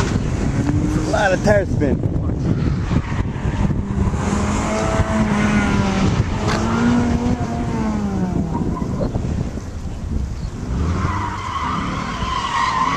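A car engine revs hard in the distance, rising and falling as it speeds through turns.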